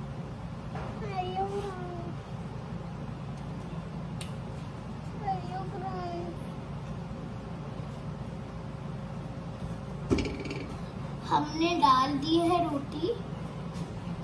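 A small child speaks softly nearby.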